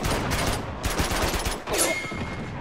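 Rapid gunfire crackles in quick bursts.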